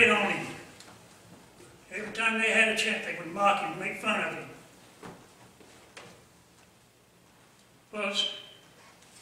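An older man speaks calmly through a microphone, with pauses.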